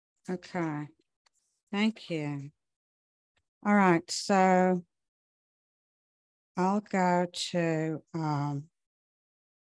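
A woman reads aloud slowly into a microphone, with long pauses.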